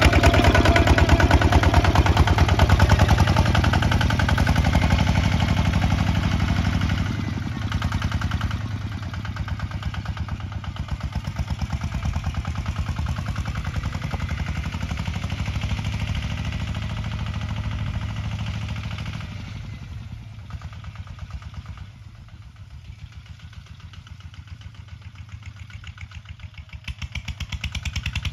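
A single-cylinder tractor engine chugs with a fast, steady beat, loud at first, then fading as it moves away.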